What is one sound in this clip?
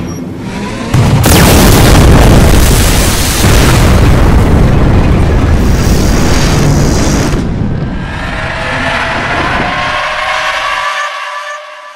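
A heavy mechanical robot whirs and clanks loudly as it moves.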